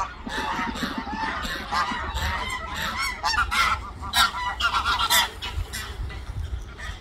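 Greylag geese honk on the water.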